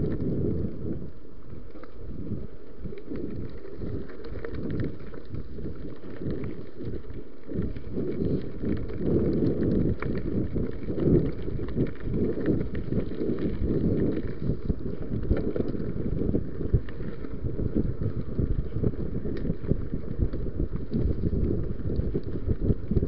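A bicycle's frame and parts clatter over bumps.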